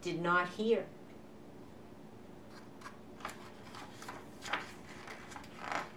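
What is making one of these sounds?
A hand brushes across a paper page.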